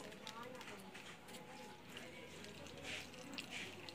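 Liquid trickles from a bottle onto a plate.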